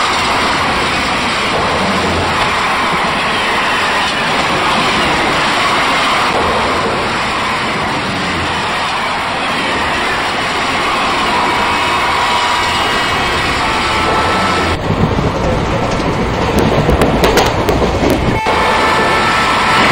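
A train rumbles steadily along the rails at speed.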